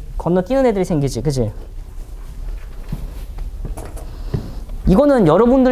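A man lectures with animation.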